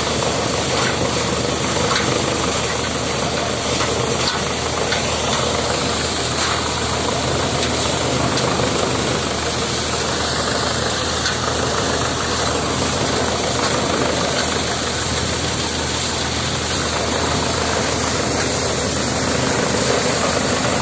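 A threshing machine's engine roars and rattles steadily close by.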